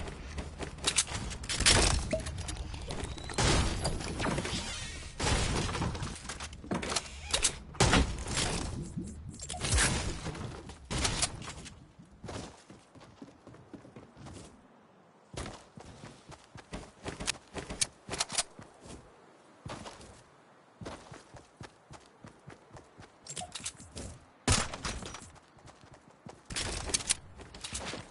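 Footsteps patter quickly as a game character runs.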